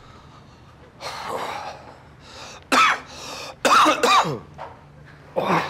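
A man speaks tensely at close range.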